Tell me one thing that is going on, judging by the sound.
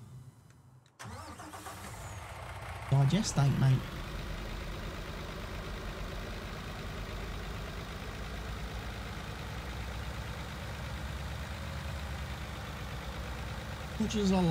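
A truck engine rumbles steadily as the truck drives slowly.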